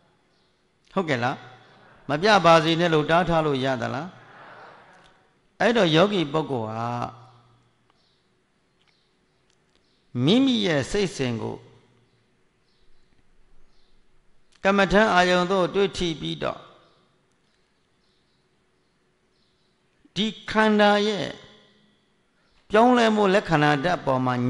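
An elderly man speaks slowly and calmly into a microphone, in phrases with long pauses, heard in a large echoing hall.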